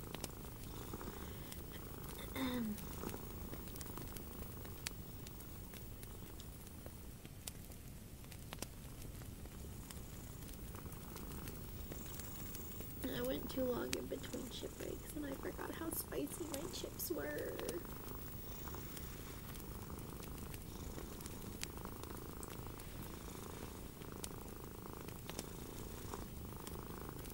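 A crochet hook softly rustles through yarn.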